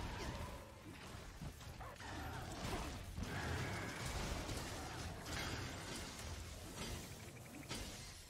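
Blades strike with sharp metallic hits.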